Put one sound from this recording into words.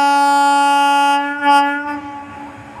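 A train horn blares loudly, then cuts off.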